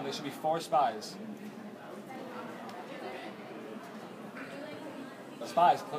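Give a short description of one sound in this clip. A group of people chatter in the background.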